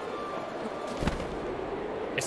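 A glider canopy snaps open with a soft thump.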